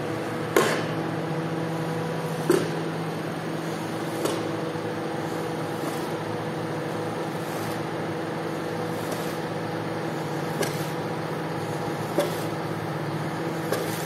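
A machine hums steadily in the background.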